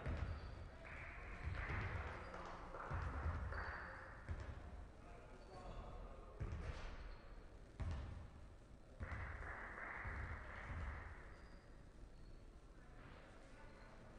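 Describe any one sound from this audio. A basketball thumps on the court.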